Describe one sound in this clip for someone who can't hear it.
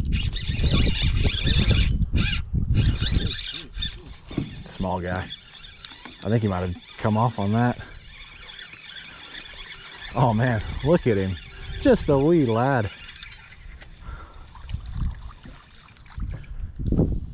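A fishing line is reeled in on a spinning reel.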